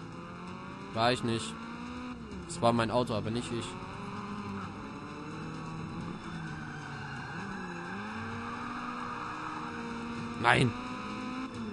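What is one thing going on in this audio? Tyres screech as a car slides through corners.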